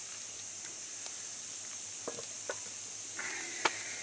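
A metal lid clanks onto a cast iron pot.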